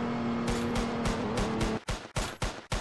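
A car engine hums steadily, then cuts off.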